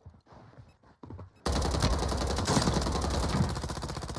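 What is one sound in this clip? A light machine gun fires in rapid automatic bursts.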